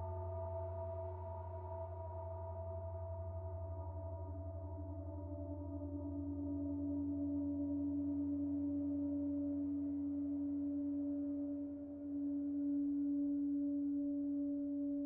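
A low electronic hum sounds beneath the drone and fades away.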